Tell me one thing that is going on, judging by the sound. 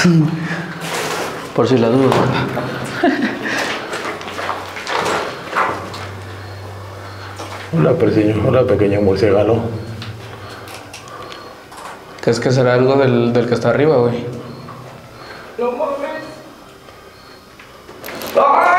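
A man talks calmly nearby in an echoing room.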